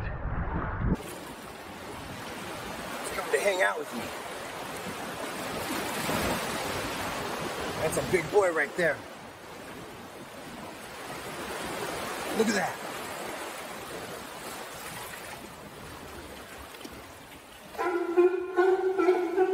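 Water splashes and sloshes among rocks.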